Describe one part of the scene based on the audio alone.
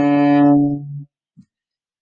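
A cello plays a long, steady bowed note.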